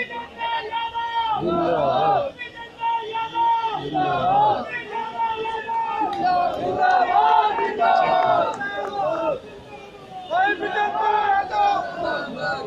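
A man speaks loudly and with animation into a microphone, heard through loudspeakers outdoors.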